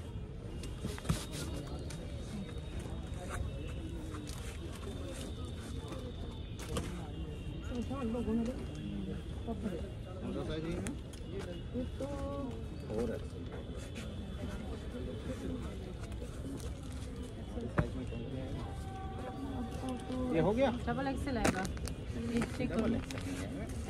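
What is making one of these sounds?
Clothes rustle as they are handled.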